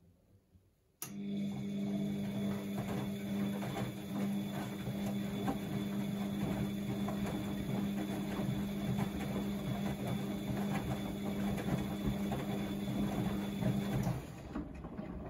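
A washing machine motor hums steadily as the drum spins.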